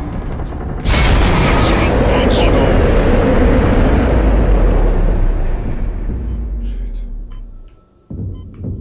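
A loud rush of venting gas roars and slowly fades.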